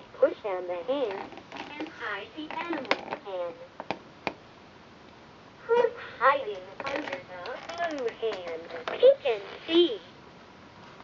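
A talking toy speaks in a small recorded voice through its speaker.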